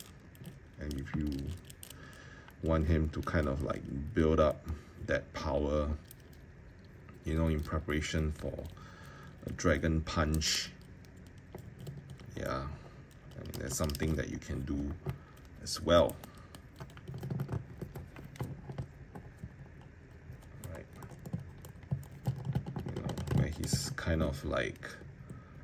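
Plastic joints of a toy figure click and creak as they are bent.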